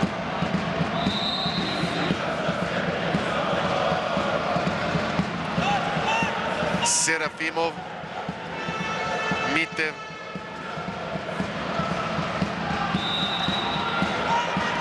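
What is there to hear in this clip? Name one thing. Sports shoes squeak sharply on a hall floor.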